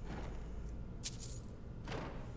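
Coins clink briefly.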